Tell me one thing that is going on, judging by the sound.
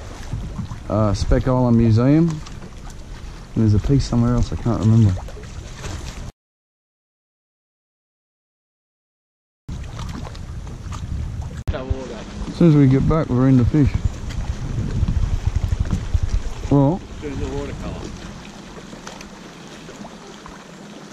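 Water laps against a boat hull.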